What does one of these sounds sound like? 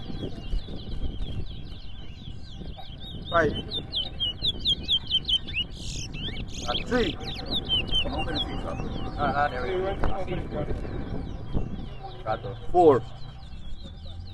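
Caged songbirds chirp and trill rapidly and continuously nearby.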